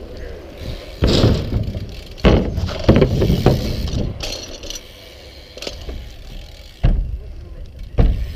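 A bicycle lands with a heavy thud on the ramp.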